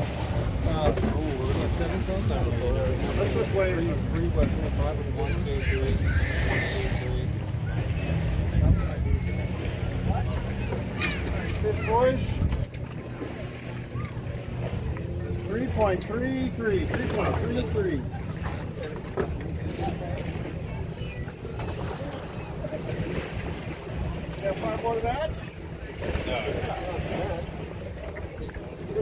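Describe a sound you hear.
Adult men talk casually nearby outdoors.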